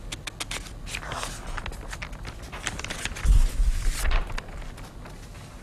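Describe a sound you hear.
Newspaper pages rustle as they are turned.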